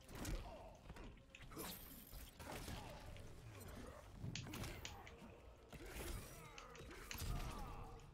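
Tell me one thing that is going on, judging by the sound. Punches and kicks land with sharp thuds.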